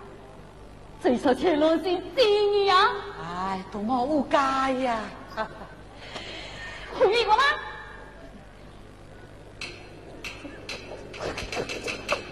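A woman speaks with animation in a high, theatrical voice.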